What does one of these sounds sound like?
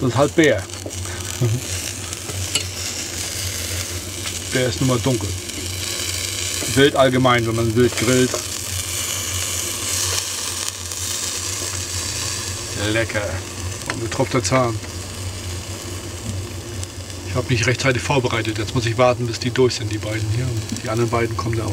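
Meat sizzles on a small grill.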